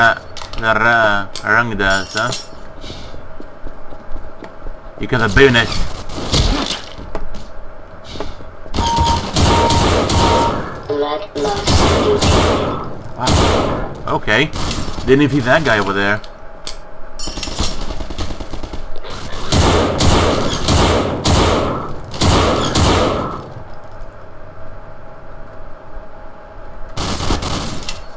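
Rifle shots ring out in quick bursts.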